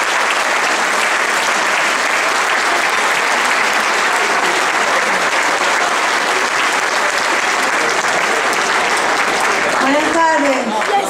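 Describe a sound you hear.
A large crowd applauds and cheers in a big tent.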